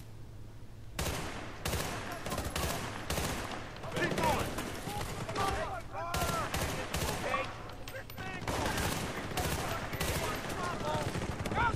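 A rifle fires rapid bursts of loud shots.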